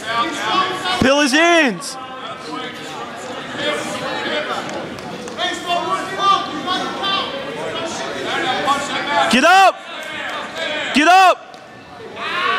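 A spectator on the sideline lets out loud, drawn-out shouts.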